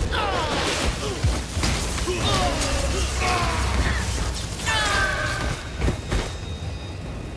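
Electric spells crackle and zap in quick bursts.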